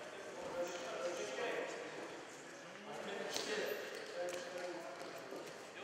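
Feet shuffle and scuff on a padded mat.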